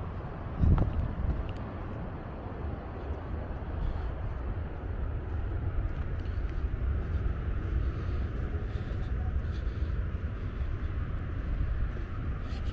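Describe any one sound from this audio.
Wind blows and rumbles steadily outdoors.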